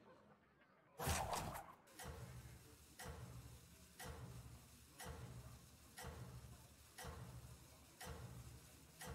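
A game countdown clock ticks steadily.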